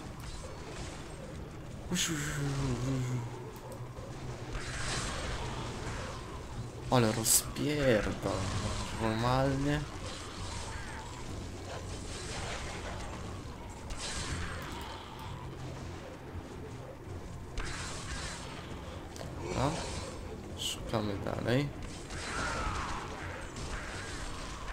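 Magic blasts and weapon blows clash in a game.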